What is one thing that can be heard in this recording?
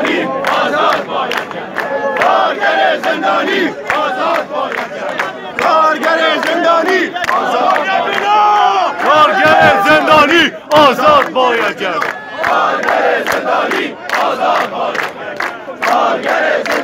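Men clap their hands in a crowd.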